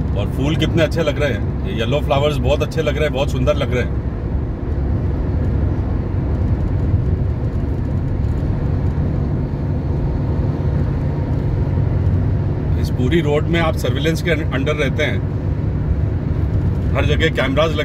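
Tyres rumble steadily inside a car driving on a highway.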